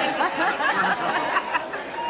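An elderly woman exclaims loudly, close by.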